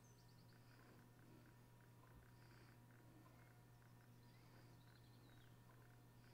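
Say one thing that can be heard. A helicopter hovers overhead with a steady low rotor drone.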